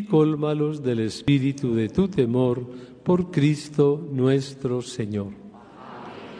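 An elderly man chants in a sung voice through a microphone, echoing in a large hall.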